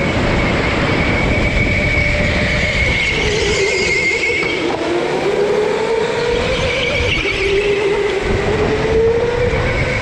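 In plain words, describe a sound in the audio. Go-kart engines whine and buzz steadily, rising and falling in pitch.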